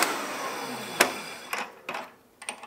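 Metal clicks sharply as a drill bit is loosened by hand.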